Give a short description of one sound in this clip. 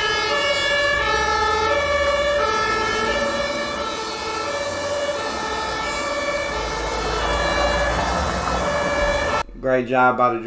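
A fire truck's two-tone hi-lo siren wails, alternating between two pitches.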